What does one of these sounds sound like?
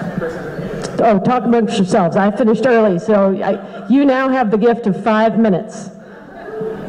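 A man speaks through a microphone and loudspeaker in a large room.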